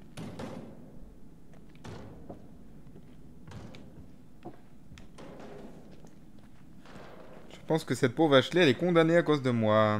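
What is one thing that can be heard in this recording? Footsteps creak slowly across wooden boards.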